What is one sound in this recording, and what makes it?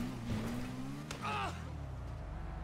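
A motorcycle crashes with a loud clatter.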